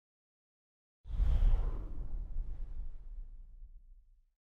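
A deep magical burst rumbles and slowly fades.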